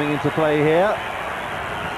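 A man in the crowd shouts a long call.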